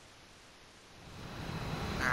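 Jet engines roar, swelling louder.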